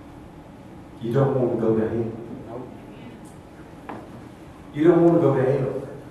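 An elderly man speaks through a microphone, with pauses between phrases.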